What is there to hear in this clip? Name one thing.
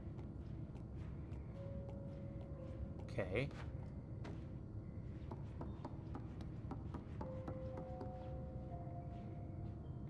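Small footsteps patter on wooden floorboards.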